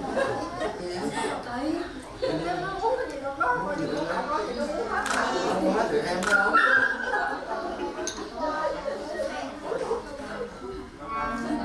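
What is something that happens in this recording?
Several men and women talk at once, close by, in lively chatter.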